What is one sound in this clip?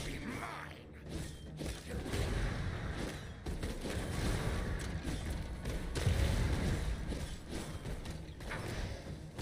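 Game spells crackle and whoosh in quick bursts.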